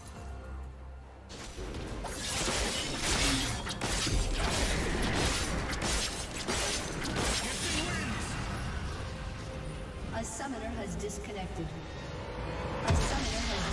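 Video game combat effects clash, zap and thud rapidly.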